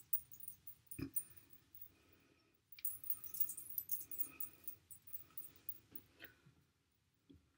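A woman speaks quietly close by.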